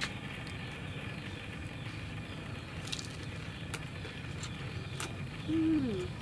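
Two young women chew and munch on food.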